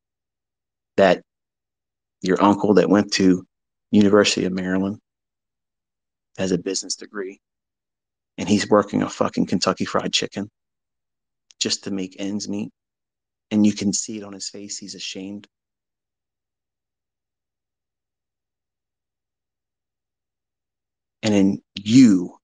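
A man speaks into a microphone in short, deliberate phrases with pauses.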